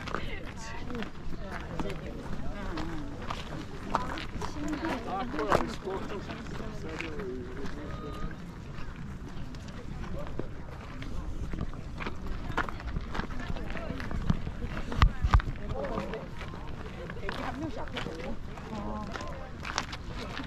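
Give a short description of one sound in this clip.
Footsteps scuff on rock.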